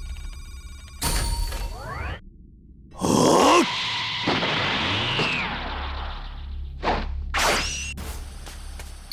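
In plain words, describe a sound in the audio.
A loud burst of energy roars.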